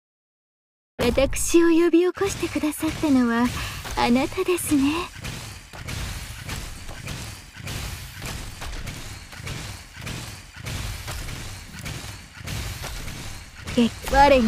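Game battle effects clash and zap repeatedly.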